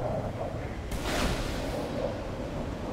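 A flare launches with a sudden sharp hiss.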